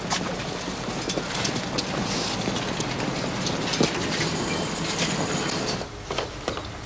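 Footsteps of several people scuff along a paved path outdoors.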